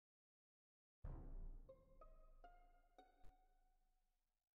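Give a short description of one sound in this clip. A video game chime plays a short rising tune.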